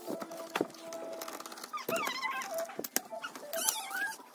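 A screwdriver turns small screws with faint clicks.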